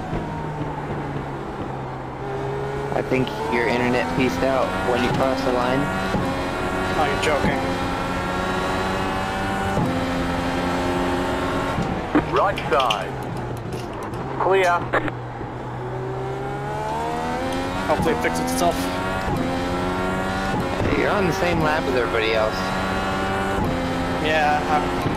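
A racing car engine roars, climbing in pitch and dropping sharply as it shifts up through the gears.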